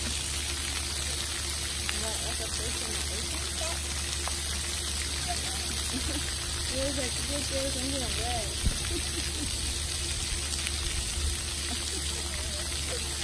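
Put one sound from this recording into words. Water fountains spray and splash steadily outdoors.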